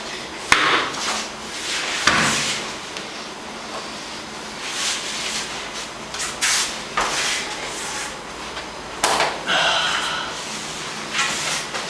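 Heavy cotton uniforms rustle and swish as two grapplers move.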